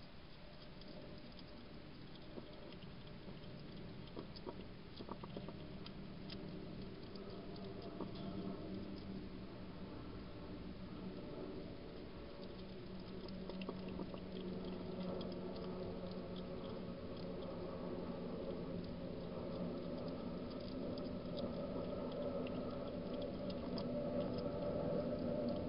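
A porcupine chews and crunches food close by.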